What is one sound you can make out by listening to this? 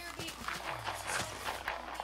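Dirt crumbles as a block is dug out.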